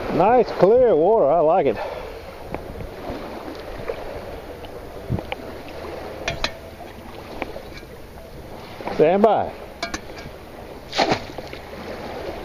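Water laps gently against a stone wall.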